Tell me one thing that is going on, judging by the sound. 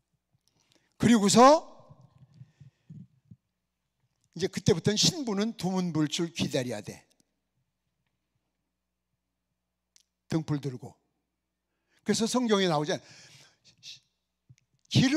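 A middle-aged man preaches forcefully into a microphone, in short loud bursts with pauses.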